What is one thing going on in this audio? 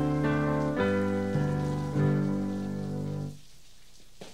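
A piano plays slow, full chords.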